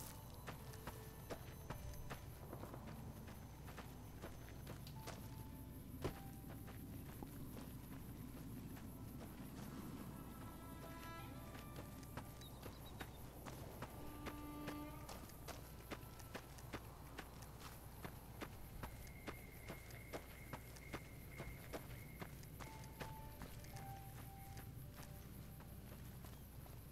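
Footsteps crunch steadily on gravel and dirt.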